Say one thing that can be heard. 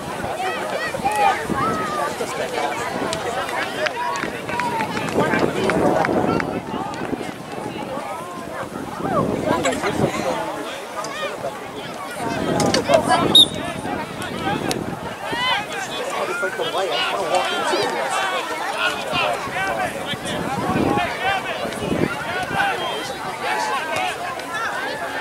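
Boys shout and call out across an open field.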